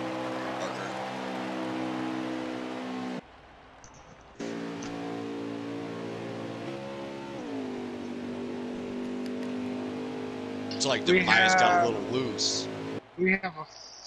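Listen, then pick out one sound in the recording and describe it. A racing truck engine roars at high speed, its pitch dipping briefly.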